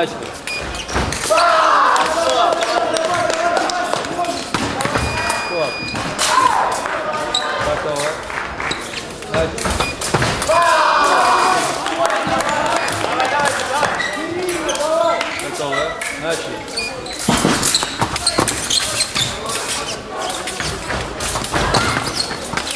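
Fencing blades clash and clink.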